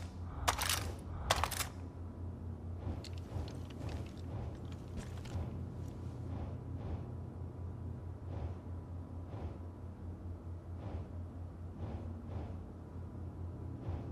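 Ammunition pickups click softly over and over.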